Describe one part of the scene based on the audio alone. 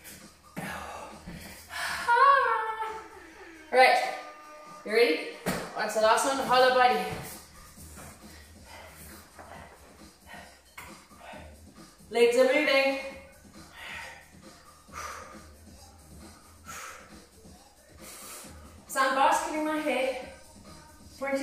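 A woman speaks energetically, close by, between breaths.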